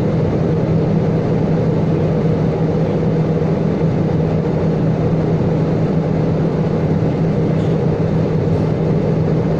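A jet engine roars steadily from inside an aircraft cabin.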